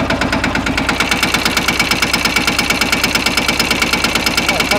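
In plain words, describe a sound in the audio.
A tractor's engine revs louder.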